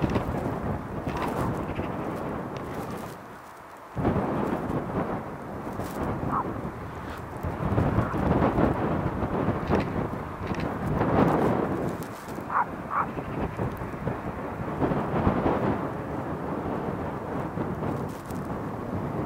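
A jet airliner's engines roar steadily as it rolls past on the ground.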